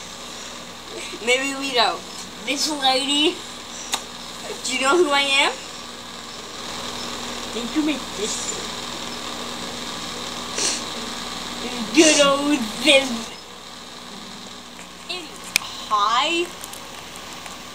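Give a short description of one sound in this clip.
A young boy speaks playfully and close by.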